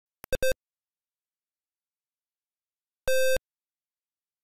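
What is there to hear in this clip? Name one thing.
Short buzzy electronic beeps sound from an old computer game.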